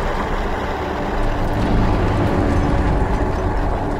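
A huge creature roars deeply.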